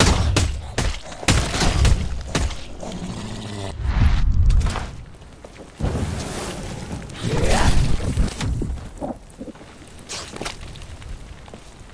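Heavy blows thud and squelch into flesh.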